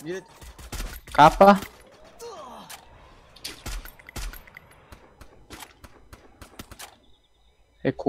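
Rifle shots crack sharply several times.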